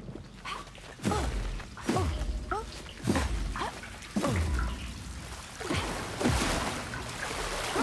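Soft bouncy whooshes and thumps sound again and again as a small figure hops from stone to stone.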